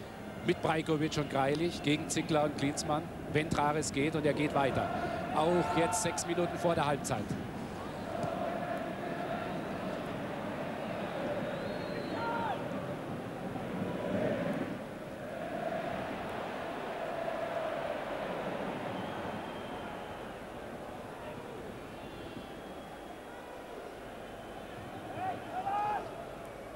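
A large stadium crowd murmurs and roars steadily outdoors.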